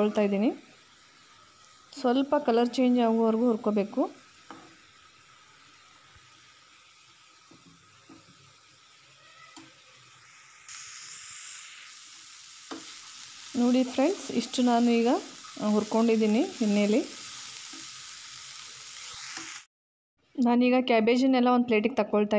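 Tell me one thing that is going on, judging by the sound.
A spoon scrapes and stirs in a pan.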